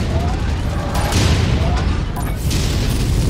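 Electric arcs crackle and zap loudly.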